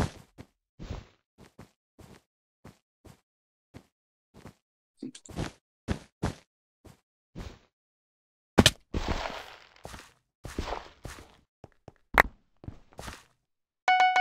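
Blocks are placed with short, soft thuds in quick succession.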